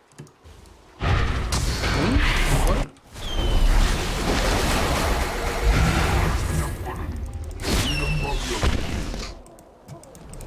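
Game sound effects clash and zap during a fight.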